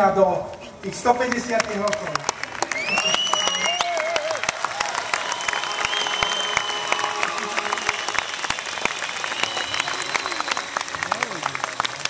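A folk band plays accordions and a double bass at a lively pace.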